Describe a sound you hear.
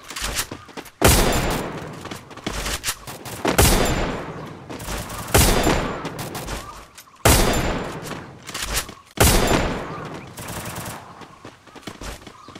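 Loud gunshots ring out in sharp bursts, each followed by a long echoing decay.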